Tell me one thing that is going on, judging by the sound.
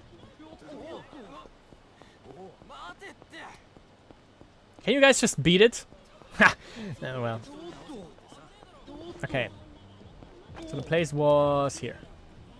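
Footsteps slap quickly on pavement as a man runs.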